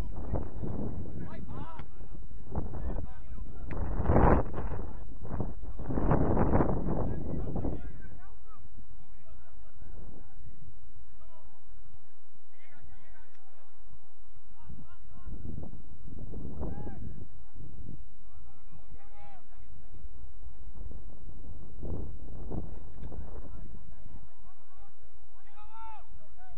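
Players shout to each other across a field, far off.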